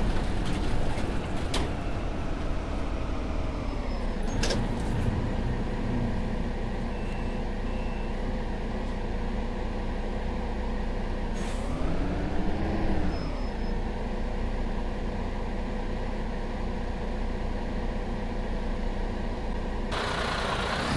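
A city bus diesel engine hums, heard from inside the cab.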